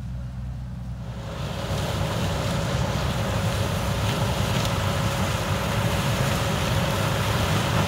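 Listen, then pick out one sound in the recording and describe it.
A combine harvester rumbles steadily, growing louder as it approaches.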